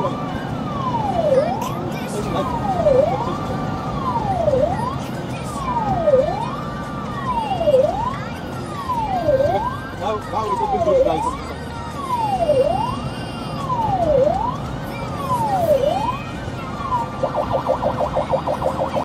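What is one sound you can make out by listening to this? A siren wails up and down steadily, close by, then switches to a fast yelp.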